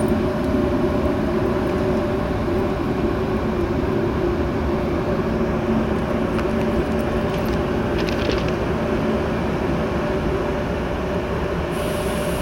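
A train rolls in slowly with a low, steady rumble and hum.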